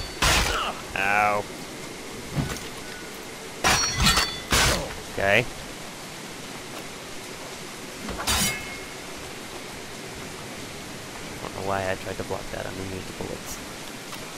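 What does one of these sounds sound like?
A man grunts and cries out in pain.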